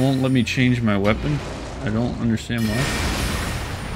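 A fire spell roars with a burst of flame.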